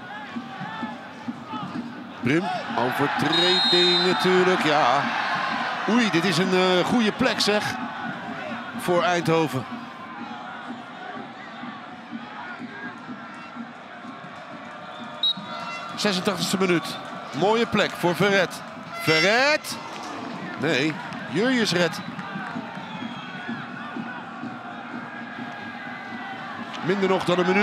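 A stadium crowd murmurs in the distance.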